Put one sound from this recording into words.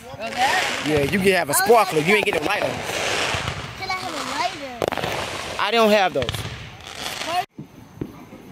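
A young boy talks and laughs close by.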